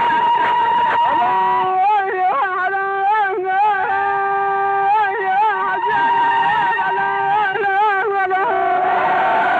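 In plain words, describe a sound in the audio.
A man sings a mournful, wavering wail up close.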